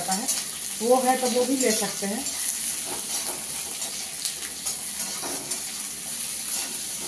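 A metal spatula scrapes and clanks against a pan.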